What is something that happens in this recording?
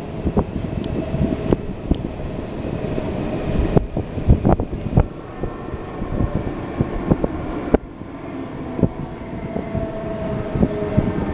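A train rumbles steadily along the tracks, with wheels knocking and clattering.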